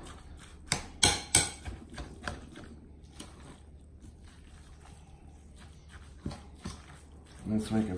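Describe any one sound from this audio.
Hands squelch while mixing a moist mixture.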